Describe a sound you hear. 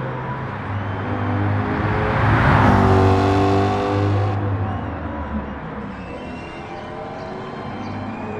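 A V8 sports car engine roars as the car accelerates along a racetrack.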